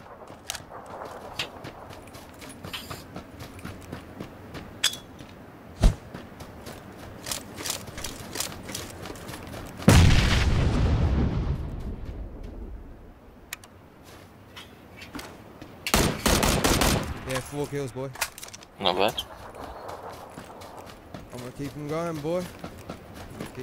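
Footsteps run quickly through grass.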